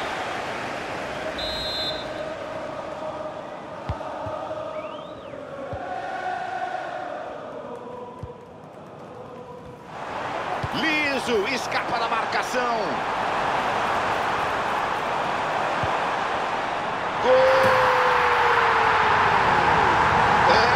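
A large stadium crowd murmurs and chants.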